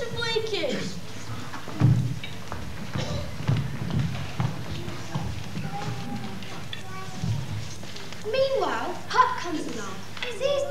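Children call out with lively, sing-song voices in a large echoing hall.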